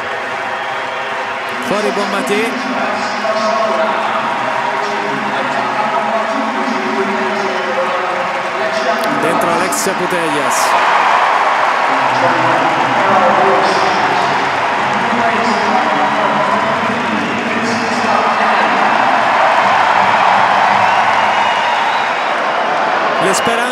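A large stadium crowd sings and chants loudly.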